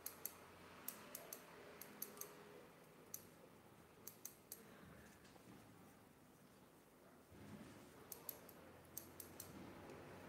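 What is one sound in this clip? Scissors snip close by in quick bursts.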